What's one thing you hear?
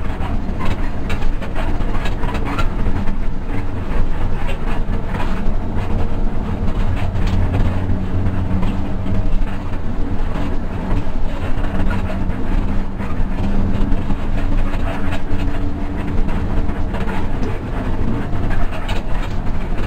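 A bus cabin rattles and creaks as the bus rolls over the road.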